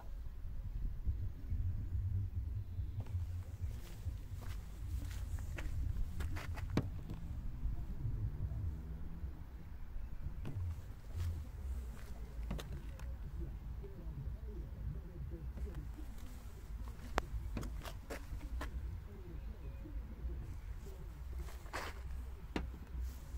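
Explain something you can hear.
A probe taps and clicks against a car's metal body now and then.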